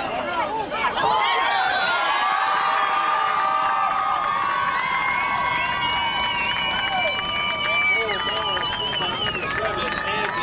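Young men cheer loudly after a goal.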